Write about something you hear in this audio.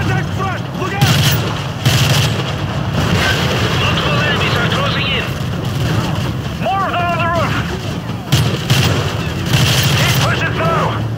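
Rifle gunfire rattles in loud bursts.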